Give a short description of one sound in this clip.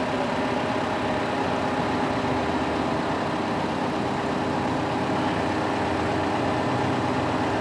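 A large crane truck's diesel engine rumbles steadily as it drives slowly past.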